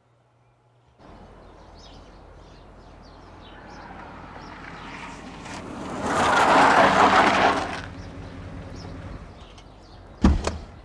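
A car drives up slowly on paving and stops.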